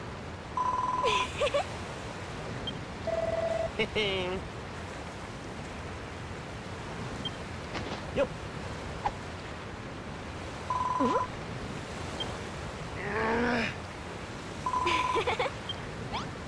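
Short electronic chimes beep as lines of dialogue pop up.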